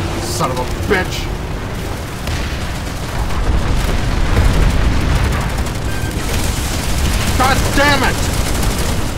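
A man talks into a microphone in short, lively bursts.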